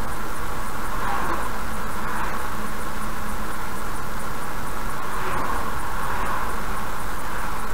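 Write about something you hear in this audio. Oncoming lorries rush past close by, with a brief whoosh.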